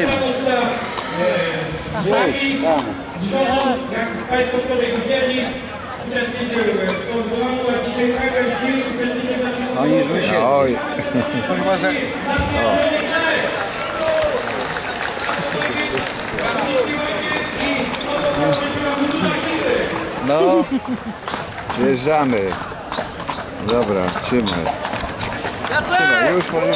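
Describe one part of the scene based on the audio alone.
Carriage wheels rumble over paving.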